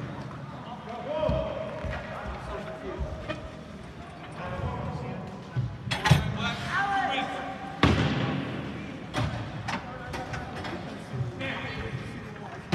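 Spectators call out and cheer in a large echoing hall.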